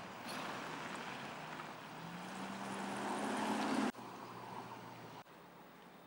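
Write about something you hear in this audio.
A car engine idles close by.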